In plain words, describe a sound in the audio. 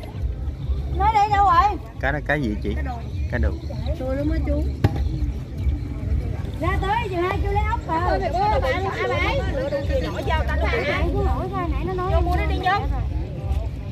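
Women talk with animation close by, outdoors.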